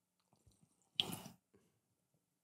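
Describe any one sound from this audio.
A man slurps a drink close to a microphone.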